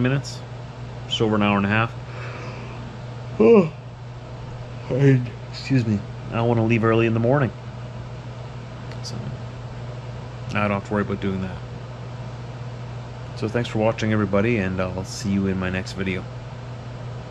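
A man talks calmly and close by, with pauses.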